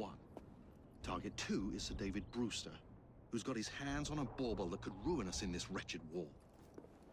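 A man answers calmly and close by.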